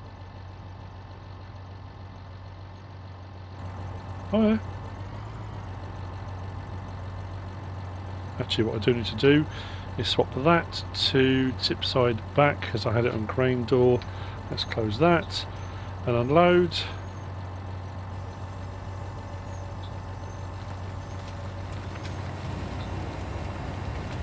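A tractor engine hums steadily at idle.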